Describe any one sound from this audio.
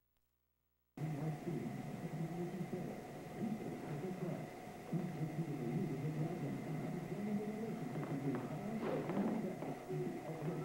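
A television plays sound in the room.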